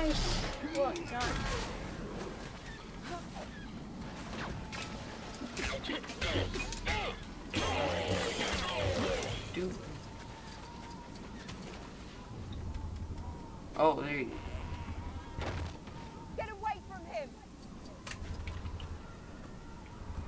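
Lightsabers hum and clash.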